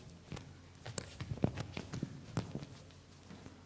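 Footsteps thud quickly across a wooden stage.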